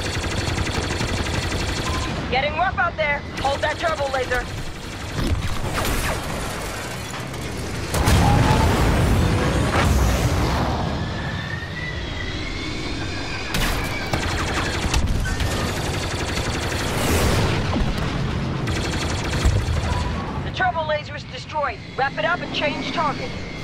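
A spacecraft engine roars steadily.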